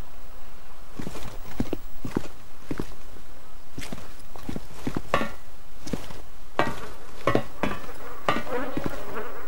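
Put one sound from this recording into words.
Footsteps thud up metal stairs.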